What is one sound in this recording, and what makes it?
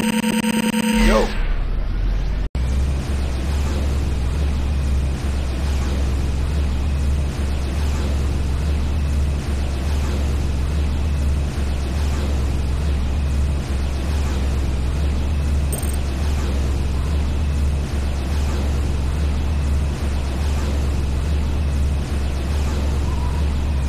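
A vehicle engine hums with a low, steady drone.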